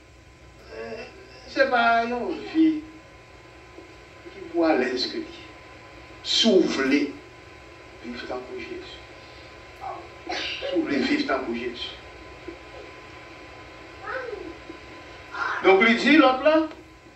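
An elderly man preaches with animation into a microphone, in bursts with pauses.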